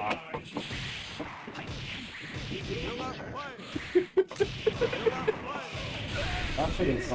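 Video game music plays throughout.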